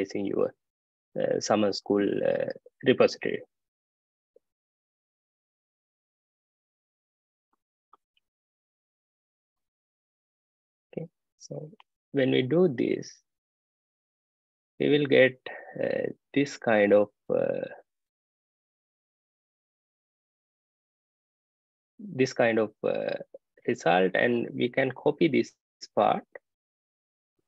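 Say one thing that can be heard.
A man speaks calmly into a microphone, explaining in short bursts with pauses.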